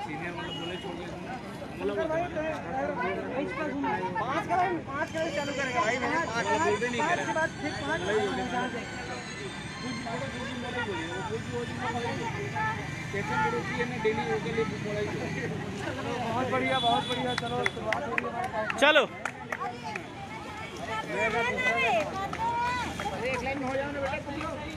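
A crowd of young men and women talk loudly together outdoors.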